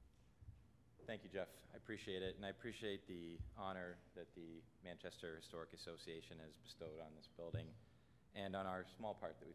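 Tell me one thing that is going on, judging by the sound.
A young man speaks calmly into a microphone over loudspeakers.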